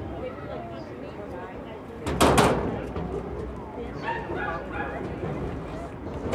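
Young women chatter quietly at a distance outdoors.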